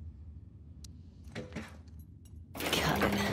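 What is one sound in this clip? A safe's combination dial clicks as it turns.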